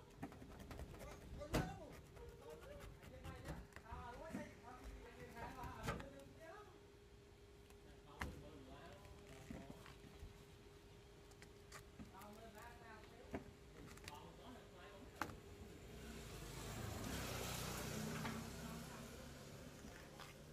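A knife cuts and pries at a spiky fruit husk.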